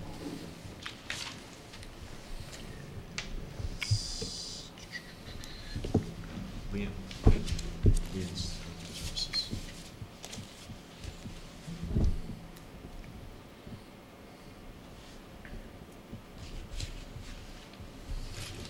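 Papers rustle and shuffle close to a microphone.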